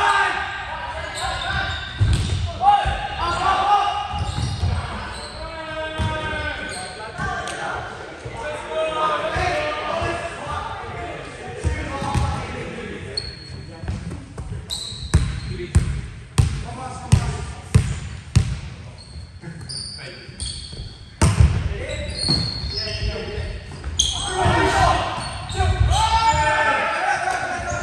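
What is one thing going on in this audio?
Young men call out and talk across the court, echoing in a large hall.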